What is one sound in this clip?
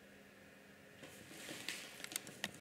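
Fabric of a bag rustles softly as hands handle it.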